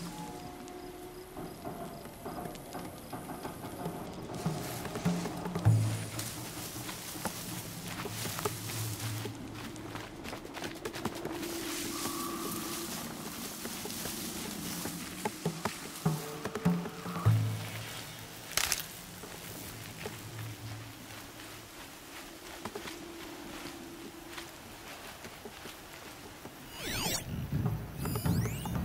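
A fire crackles and pops nearby.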